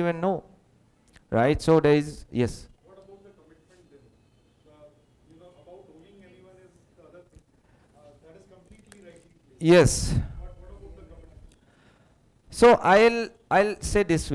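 A man speaks calmly into a headset microphone, heard through loudspeakers in an echoing room.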